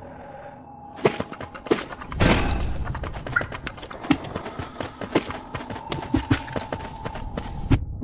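Small quick footsteps patter on hard ground.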